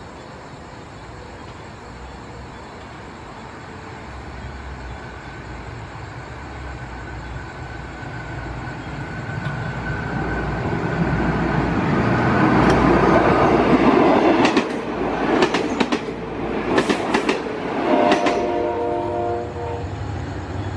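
A diesel passenger train approaches and roars past.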